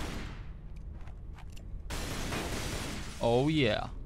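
Pistol shots ring out.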